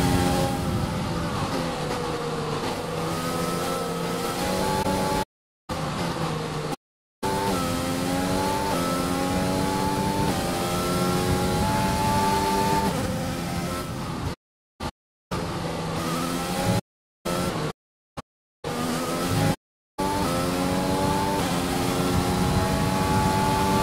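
A racing car engine whines at high pitch, rising and falling as it shifts gears.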